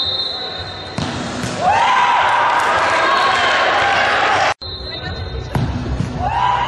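A ball is kicked hard with a thump.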